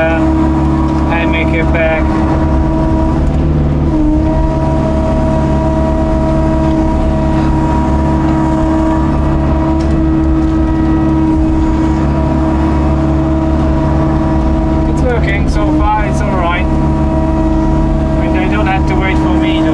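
A diesel excavator engine drones steadily up close.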